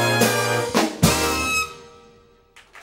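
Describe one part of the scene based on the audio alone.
A big band plays a loud brass chord.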